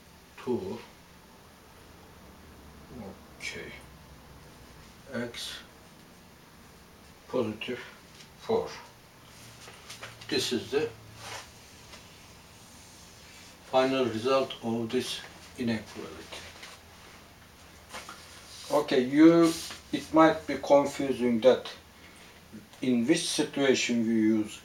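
A man speaks calmly and steadily, close by.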